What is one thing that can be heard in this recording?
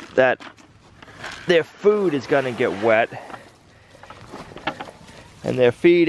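Feed rattles as it is poured from a bucket into a bowl.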